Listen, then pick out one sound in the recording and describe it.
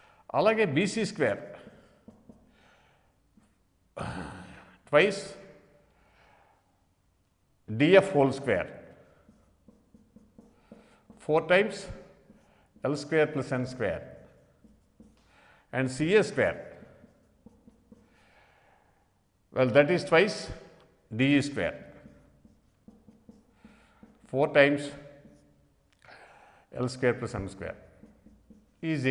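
An elderly man speaks calmly in short phrases, close to a microphone.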